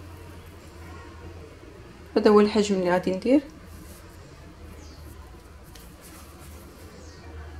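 Hands softly roll and pat soft dough.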